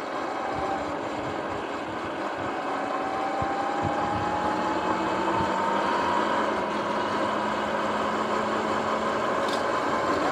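An electric bike motor whines, slowly rising in pitch as it speeds up.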